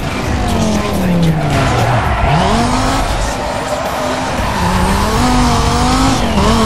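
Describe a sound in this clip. A racing car engine roars loudly, its pitch falling and rising as it shifts gears.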